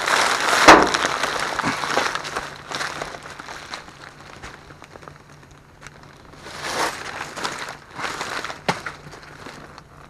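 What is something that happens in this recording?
Plastic trash bags rustle and crinkle.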